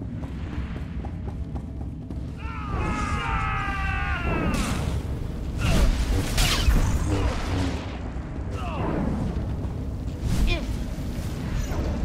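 Lightsabers hum and swoosh as they swing.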